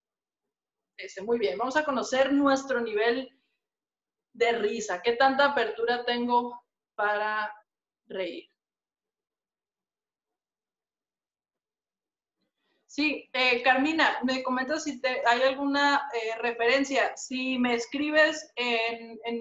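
A woman speaks calmly through a microphone over an online call.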